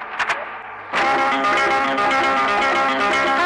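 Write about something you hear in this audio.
Music plays from a car cassette player.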